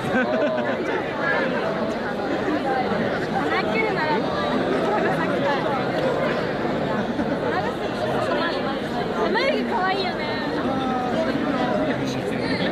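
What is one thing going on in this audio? A large crowd of men and women talks and shouts all around, outdoors.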